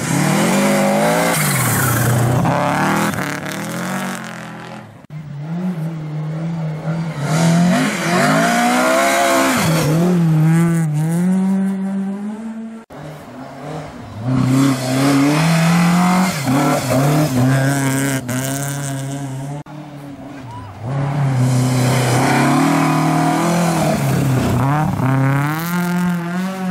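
A rally car engine roars past at high revs, rising and falling with gear changes.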